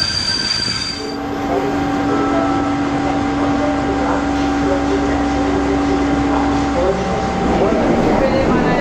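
A diesel locomotive engine idles with a steady hum.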